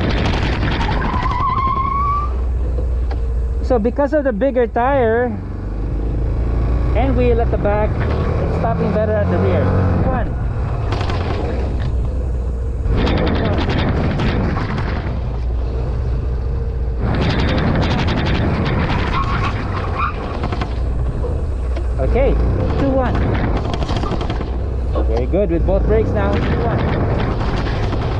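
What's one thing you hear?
A scooter engine hums steadily close by.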